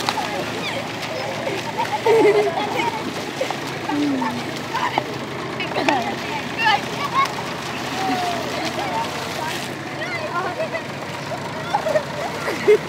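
Young boys shout and laugh excitedly close by, outdoors.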